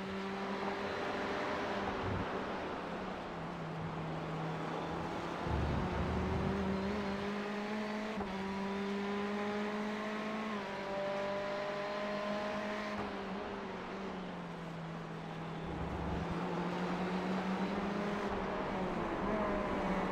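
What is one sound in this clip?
A racing car engine drones loudly, its pitch rising and falling as the car speeds up and slows down.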